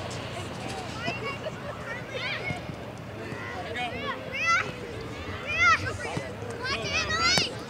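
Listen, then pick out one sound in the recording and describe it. Young girls shout and call out excitedly across an open field.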